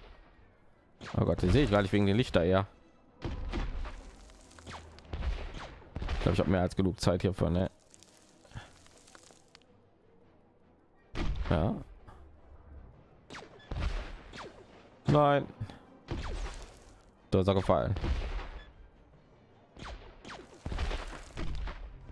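Rockets whoosh upward and burst.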